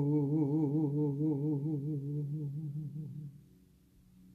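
A middle-aged woman sings a long, wavering note close by.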